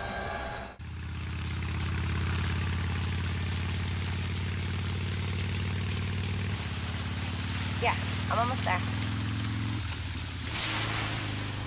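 A motorcycle engine idles with a deep steady rumble.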